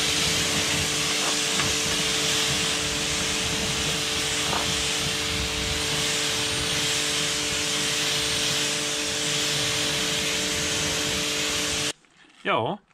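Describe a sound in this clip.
A pressure washer sprays water onto a tyre with a loud, steady hiss.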